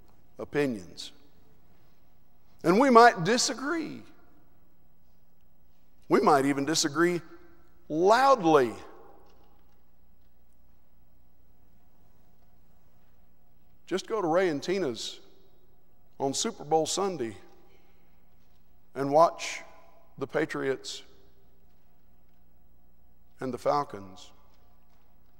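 A man speaks in measured phrases with long pauses, heard through a microphone in a large hall.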